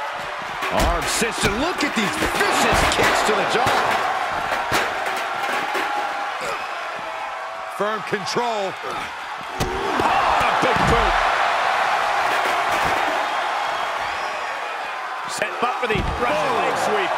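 Bodies thud heavily onto a hard floor.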